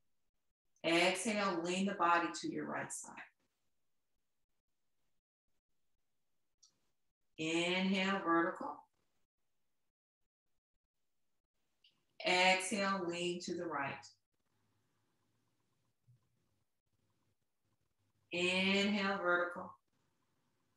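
A young woman speaks calmly and clearly, as if giving instructions, close by.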